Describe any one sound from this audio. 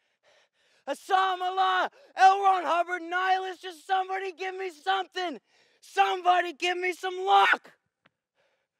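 A young boy calls out loudly outdoors.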